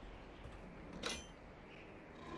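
A lever clunks as it is pulled.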